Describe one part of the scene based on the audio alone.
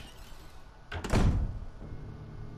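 A heavy door thuds shut.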